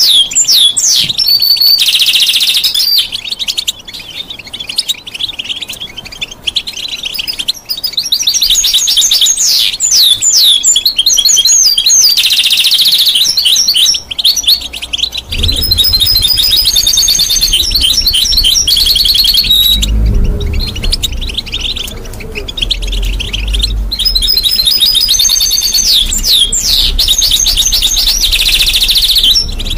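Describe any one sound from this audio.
A parrot sings loud, shrill whistles and chirps close by.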